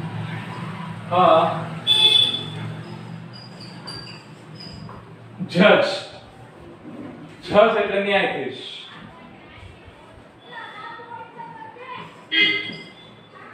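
A marker squeaks across a whiteboard.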